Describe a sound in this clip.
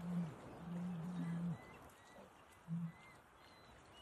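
A lion laps water.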